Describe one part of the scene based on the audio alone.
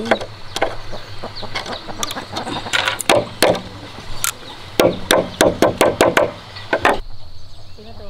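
Pliers snip and twist wire with sharp clicks.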